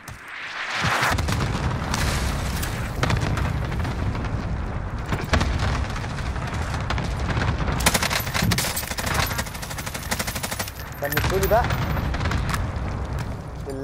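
Heavy explosions rumble and boom nearby.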